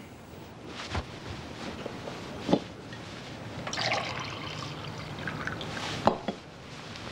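Glass clinks against glass.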